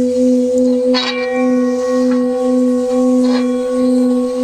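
A metal bowl is tapped twice and rings out.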